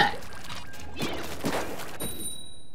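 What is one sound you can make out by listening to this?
Paint splatters with a loud wet burst.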